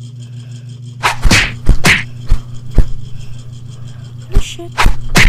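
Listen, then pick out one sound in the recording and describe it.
Game skill effects whoosh and crash in bursts.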